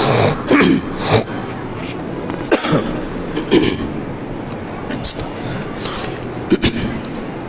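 A man speaks calmly into a clip-on microphone in a room that echoes.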